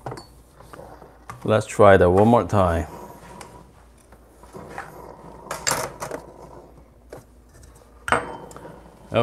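Knocks and clicks ring out from handling an espresso machine.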